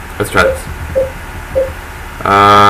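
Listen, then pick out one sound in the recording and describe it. Short electronic menu blips sound as a selection changes.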